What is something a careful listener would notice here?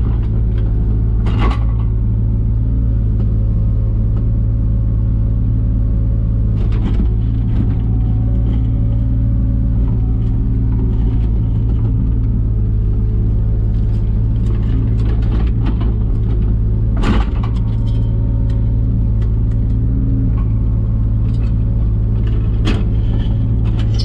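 A diesel engine rumbles steadily close by.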